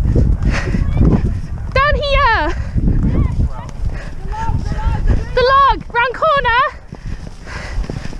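A horse gallops over grass with heavy, rhythmic hoofbeats.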